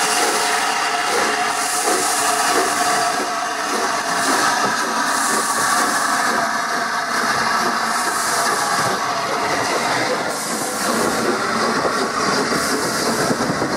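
Steam hisses loudly from a passing locomotive.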